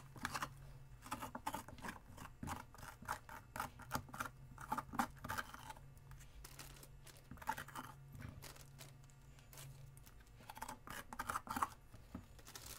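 A metal spoon scrapes the inside of a pumpkin with quick wet scratching strokes.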